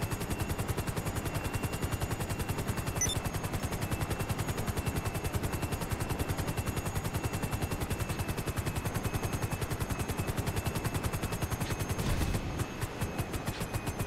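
Helicopter rotor blades thump rapidly and steadily as a helicopter flies.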